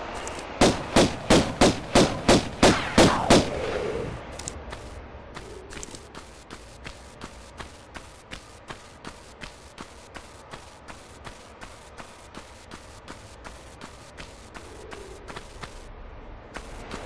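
Footsteps tap quickly and evenly on a stone floor.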